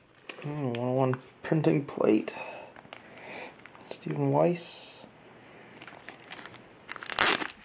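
A hard plastic case is handled, clicking and rubbing between fingers.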